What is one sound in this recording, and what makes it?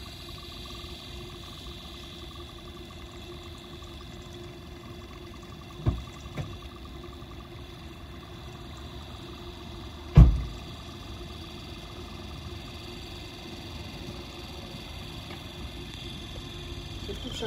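A small electric pump hums steadily.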